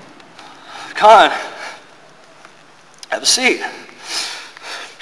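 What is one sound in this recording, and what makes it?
A young man speaks in short bursts, close by.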